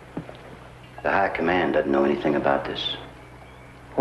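A young man speaks earnestly up close.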